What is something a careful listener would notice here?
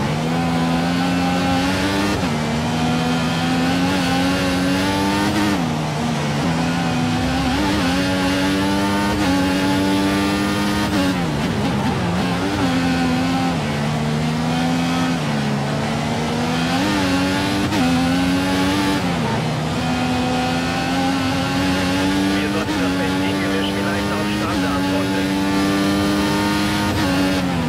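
A racing car engine screams and revs up and down through the gears.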